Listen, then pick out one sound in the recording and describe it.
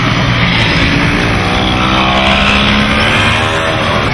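A motor scooter rides past.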